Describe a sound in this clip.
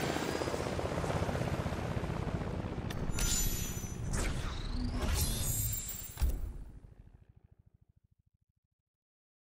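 A helicopter's rotor thumps overhead and slowly fades away.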